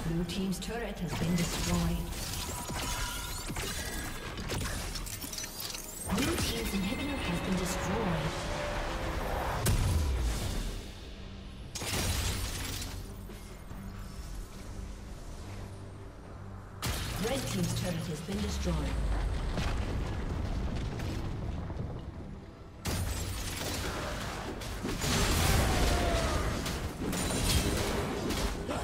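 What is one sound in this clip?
Game weapons clash and spells burst in a busy fight.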